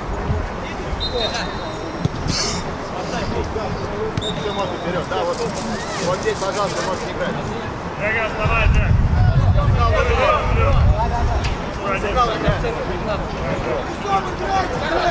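Young men shout to each other across an outdoor pitch.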